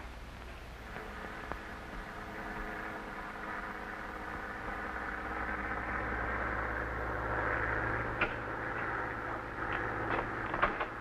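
An aeroplane engine drones overhead, growing louder and then fading.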